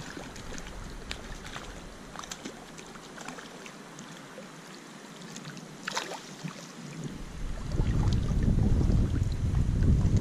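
Water ripples and splashes as a fish struggles at the surface.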